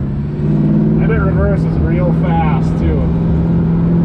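A man speaks briefly nearby over the engine noise.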